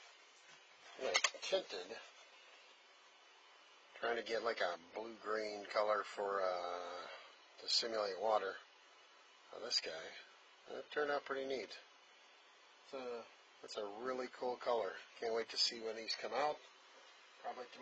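A man talks close by, calmly explaining.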